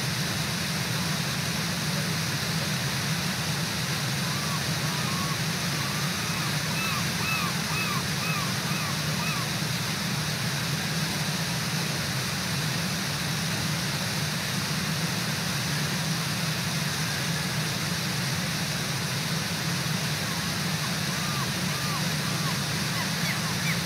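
A waterfall roars steadily nearby.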